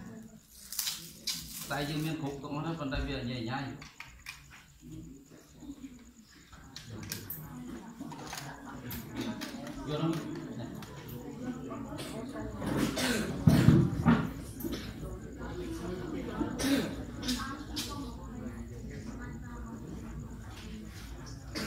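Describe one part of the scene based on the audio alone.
Many young boys chatter and murmur all around in a room.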